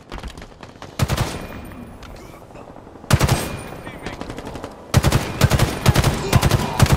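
A video game rifle fires in rapid bursts.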